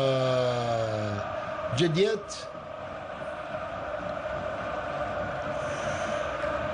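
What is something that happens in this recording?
A large crowd roars and chants steadily.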